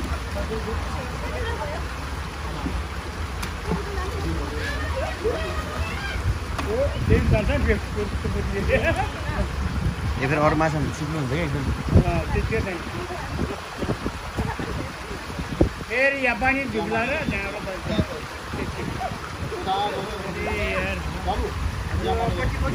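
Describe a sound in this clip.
Water splashes steadily from a pipe into a pool.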